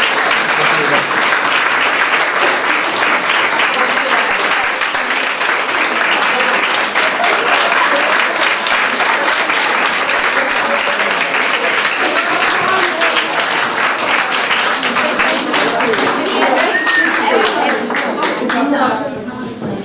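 A crowd applauds loudly in a room.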